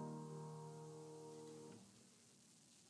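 A piano chord rings out and fades away.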